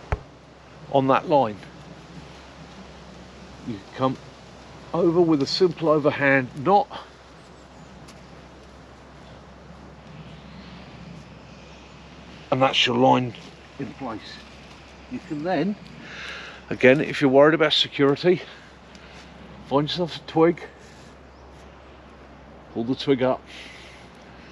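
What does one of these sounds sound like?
A middle-aged man talks calmly close to the microphone, in short bursts with pauses.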